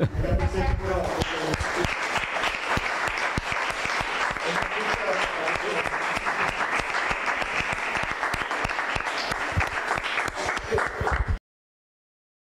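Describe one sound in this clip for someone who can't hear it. An audience applauds steadily, then stops abruptly.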